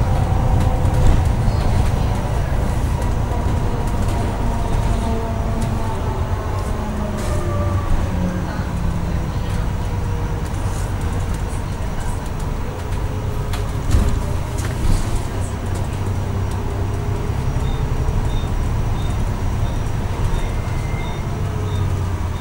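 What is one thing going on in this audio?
Small rattles and knocks sound from inside the bus.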